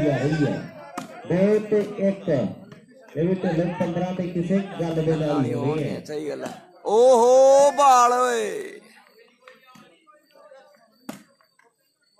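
A ball is struck with a sharp slap.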